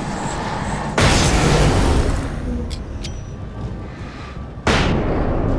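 A loud blast booms and rumbles.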